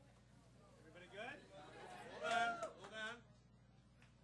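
Young men and women chatter and laugh briefly nearby.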